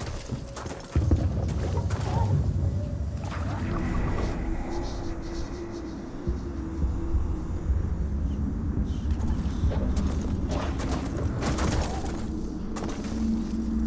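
A large beast pounds along with heavy running steps.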